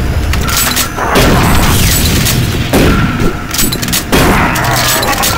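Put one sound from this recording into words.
A shotgun fires several sharp blasts.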